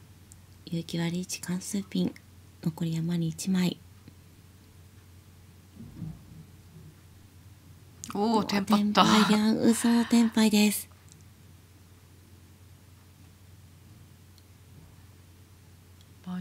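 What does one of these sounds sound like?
Mahjong tiles click as they are set down on a table.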